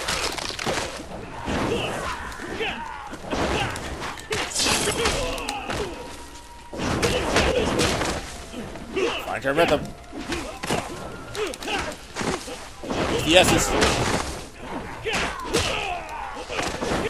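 Punches and kicks land with heavy thuds.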